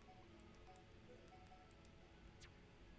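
Soft electronic menu blips tick in quick succession.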